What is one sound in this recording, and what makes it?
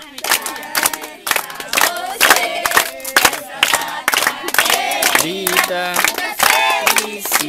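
Children clap their hands in rhythm.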